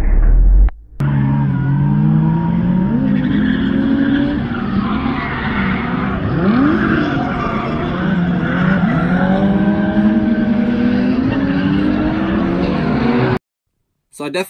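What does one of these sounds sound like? A car engine revs and whines from across an open track.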